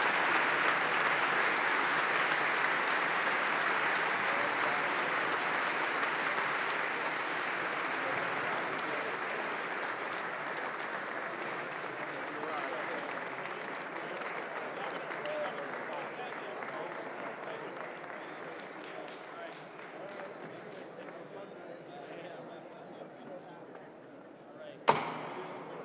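A large crowd applauds steadily in a large echoing hall, then slowly fades.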